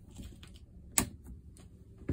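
A wall switch clicks.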